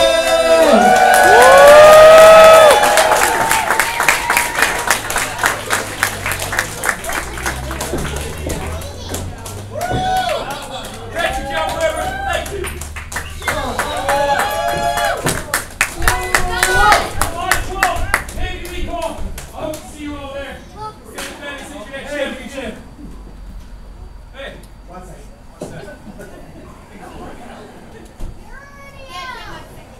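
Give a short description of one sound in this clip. Men and women in the audience shout and cheer loudly.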